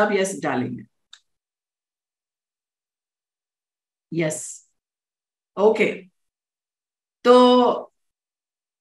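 A woman speaks warmly in short phrases into a microphone over an online call.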